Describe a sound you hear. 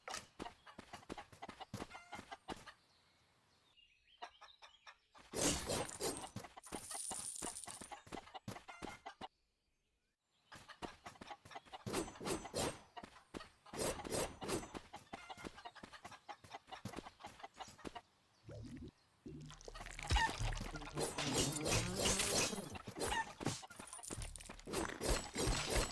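A sword swings and strikes with quick sharp game sound effects.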